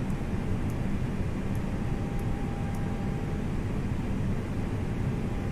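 Jet engines hum steadily with a low rumble.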